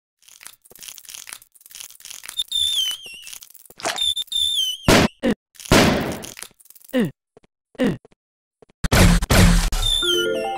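Short electronic game sound effects chime and whoosh.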